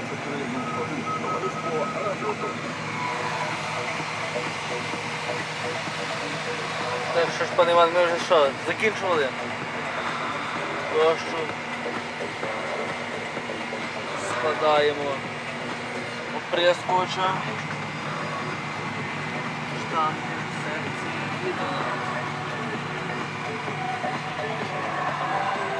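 A tractor engine hums steadily from inside a cab.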